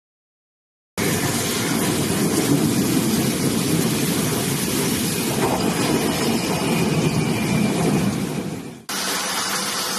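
A steam locomotive rumbles slowly past.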